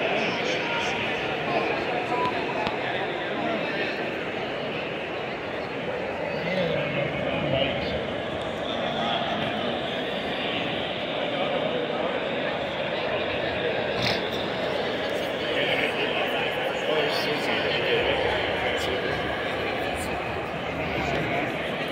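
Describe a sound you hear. A large crowd chatters loudly throughout a big echoing arena.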